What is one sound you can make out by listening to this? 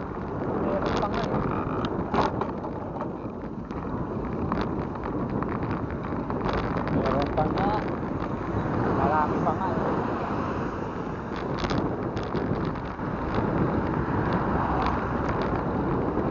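Wind rushes and rumbles past a moving microphone.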